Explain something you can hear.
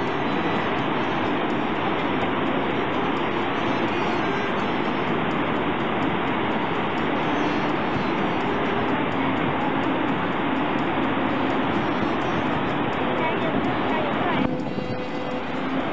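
A huge waterfall roars steadily.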